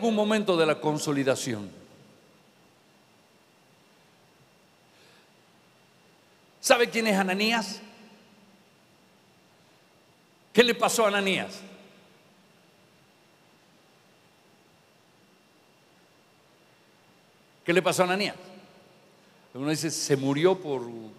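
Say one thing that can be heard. A middle-aged man speaks with animation through a microphone in short bursts with long pauses.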